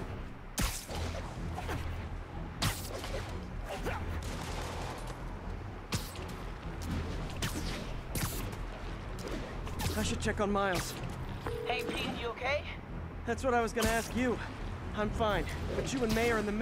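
Web lines shoot out with sharp thwips, again and again.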